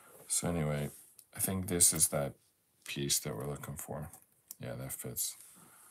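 Jigsaw puzzle pieces tap and slide softly on a table.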